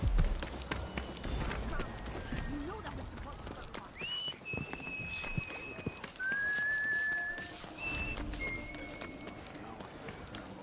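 Footsteps walk quickly over stone.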